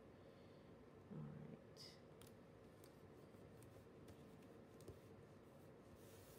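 Paper stickers crinkle softly as fingers peel and press them down.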